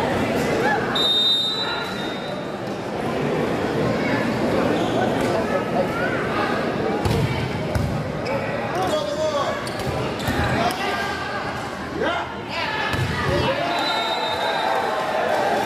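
A whistle blows briefly.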